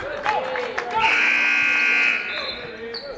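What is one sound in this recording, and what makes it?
A referee blows a long, sharp whistle.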